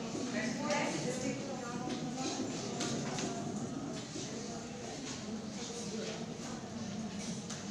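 Several women and men chatter in a room that echoes.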